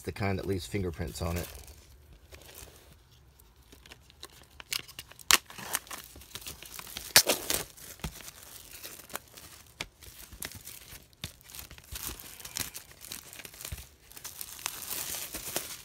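Plastic wrap crinkles and rustles under fingers.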